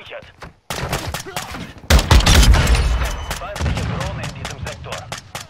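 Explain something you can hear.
A rifle fires.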